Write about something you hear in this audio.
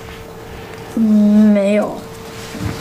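A young boy answers quietly, close by.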